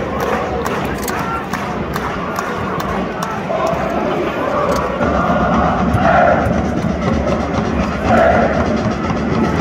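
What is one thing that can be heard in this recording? A large stadium crowd chants and sings loudly outdoors.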